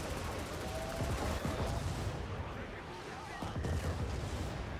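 A heavy explosion booms.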